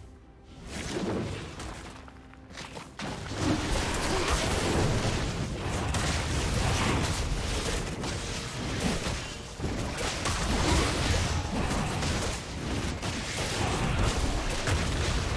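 Game battle effects clash, whoosh and crackle in a fierce fight.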